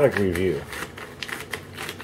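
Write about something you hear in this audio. Scissors snip through a plastic bag.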